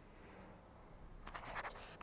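A girl laughs nearby.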